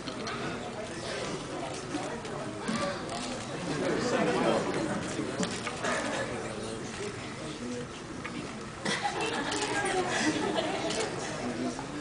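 A young woman talks calmly with a fan up close.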